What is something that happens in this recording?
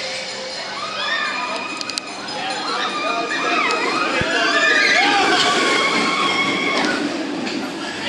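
Riders on a roller coaster scream as the train rushes past.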